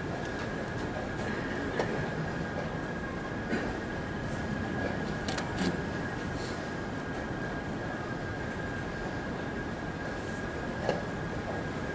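Chess pieces click sharply onto a wooden board.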